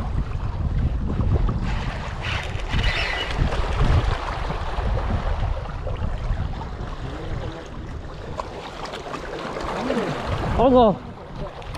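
A fishing reel clicks as it is handled.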